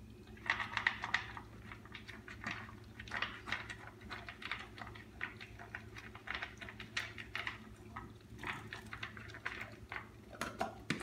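A dog crunches dry kibble from a plastic bowl.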